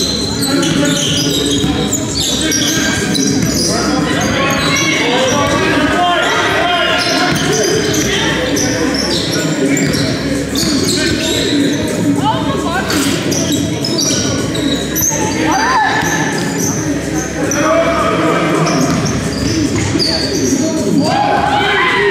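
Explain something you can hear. Men shout and call out to each other across a large echoing hall.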